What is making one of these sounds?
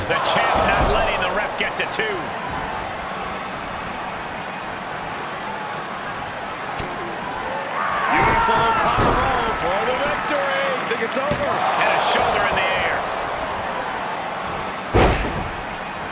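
Bodies slam hard onto a wrestling mat.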